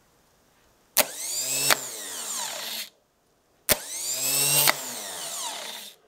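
A starter motor whirs at high speed in two short bursts.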